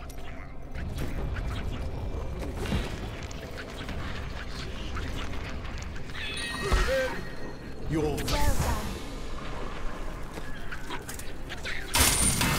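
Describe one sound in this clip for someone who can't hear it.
Game combat sounds clash and crackle with magic effects.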